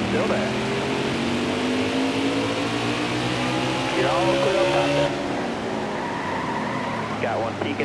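A man talks through a microphone in short bursts.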